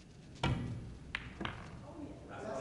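Billiard balls knock together.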